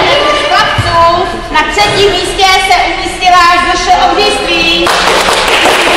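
A woman reads out names in a large echoing hall.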